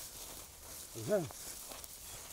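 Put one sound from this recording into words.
A cow moos nearby.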